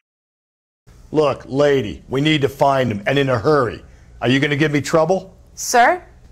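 A man speaks firmly and urgently, close by.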